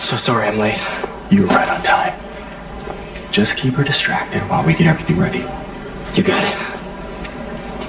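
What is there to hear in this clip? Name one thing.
A middle-aged man speaks warmly and calmly.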